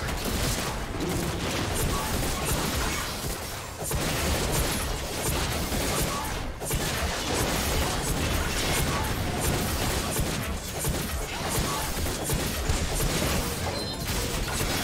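Game weapons and attacks clash repeatedly.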